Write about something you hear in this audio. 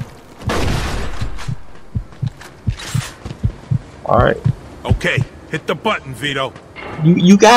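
Gunshots ring out in quick bursts, echoing in a large hall.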